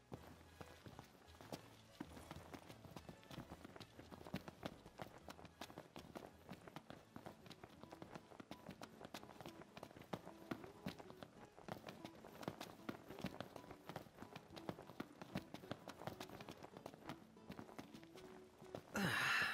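Footsteps run quickly on hard stone steps.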